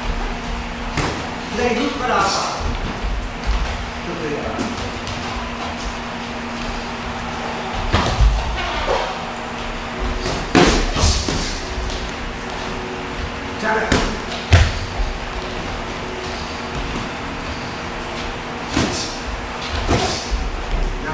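Boxing gloves thud against bodies and gloves in sharp bursts.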